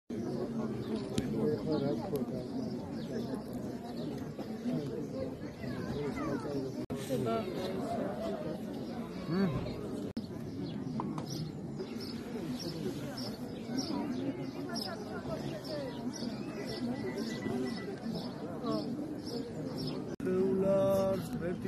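A large crowd of men and women talks and calls out all around, close by, outdoors.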